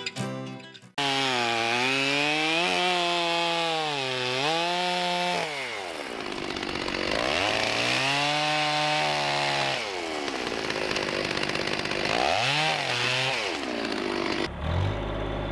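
A chainsaw revs up and down loudly, close by.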